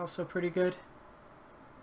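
A man talks briefly into a nearby microphone.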